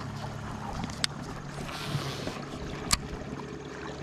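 A fishing reel's bail snaps shut with a sharp click.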